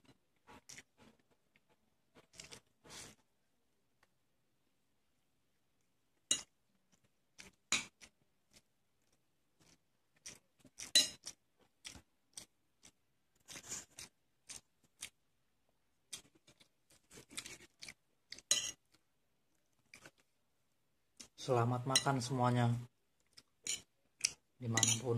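A person chews food close up with wet, smacking sounds.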